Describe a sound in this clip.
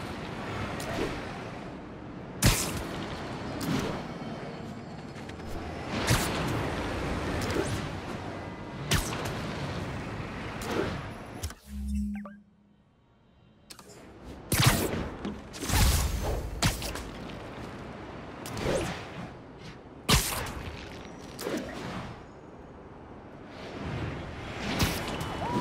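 Webs snap out with sharp whooshing swishes again and again.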